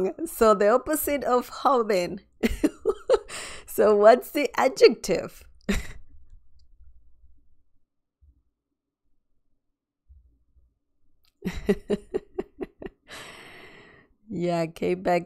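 A woman speaks with animation into a close microphone.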